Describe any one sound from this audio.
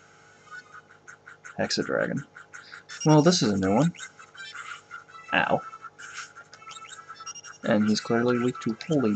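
Chiptune game music plays steadily.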